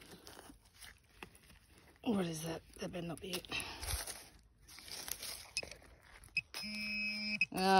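A small trowel scrapes and digs into dry soil and grass.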